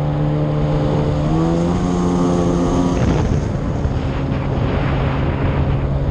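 An engine drones loudly up close, shifting in pitch.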